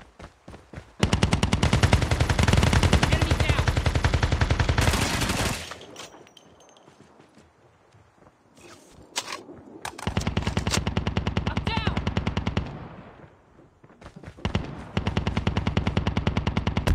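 A rifle fires rapid bursts close by.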